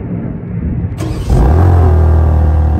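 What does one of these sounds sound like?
A car engine starts with a sudden loud roar.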